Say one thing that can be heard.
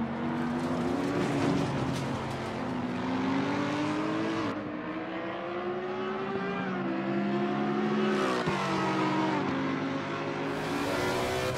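Racing car engines roar, rising in pitch and dropping with each gear change.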